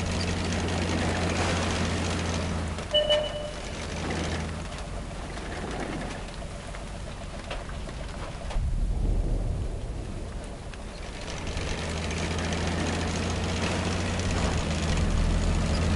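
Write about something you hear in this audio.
A tank engine rumbles low and steadily, fading out for a while and returning.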